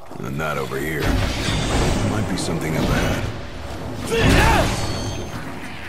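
Blades clash and strike loudly in a fight.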